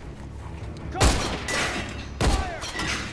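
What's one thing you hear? A pistol fires sharp shots that echo in a large hall.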